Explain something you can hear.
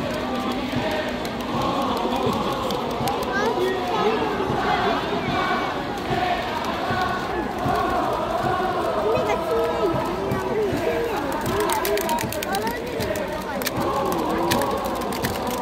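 A large crowd sings and chants together loudly in an open stadium.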